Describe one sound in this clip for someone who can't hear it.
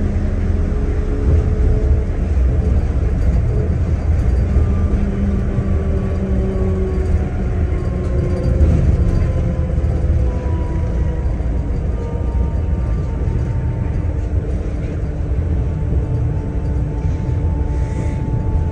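A train rumbles steadily along an elevated track.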